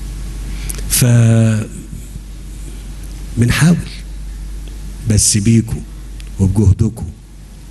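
A middle-aged man speaks into a microphone in bursts, with pauses between phrases.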